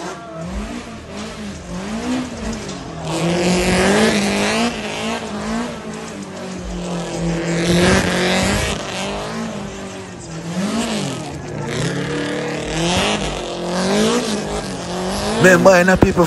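A car engine revs hard, rising and falling.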